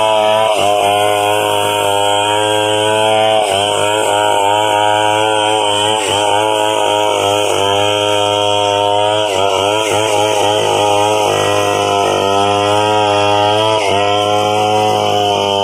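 A chainsaw engine roars loudly and steadily up close, dipping in pitch as it cuts into wood.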